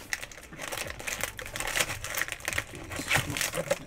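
Foil card packs crinkle and rustle in someone's hands.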